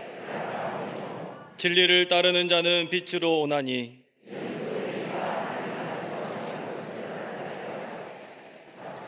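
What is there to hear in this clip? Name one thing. A crowd of people reads aloud together in unison in a large hall.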